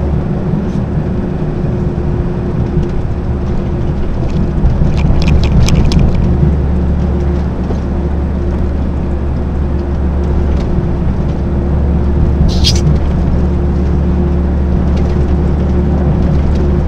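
A diesel engine drones inside the cab of a heavy truck cruising on a motorway.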